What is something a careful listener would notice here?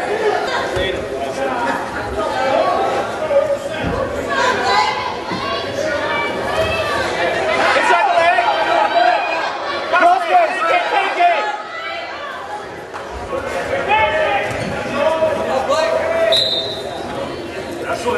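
Wrestlers thud and scuffle on a mat.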